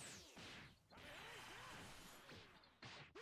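An energy blast whooshes and roars.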